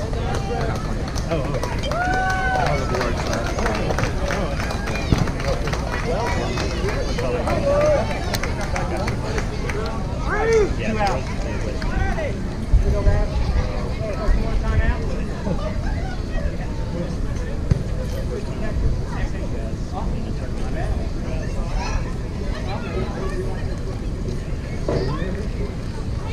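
Young players and spectators call out and chatter at a distance outdoors.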